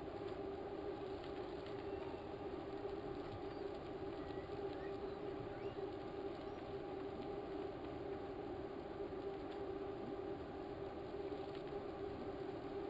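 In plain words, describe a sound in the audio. An indoor bike trainer whirs steadily as a rider pedals.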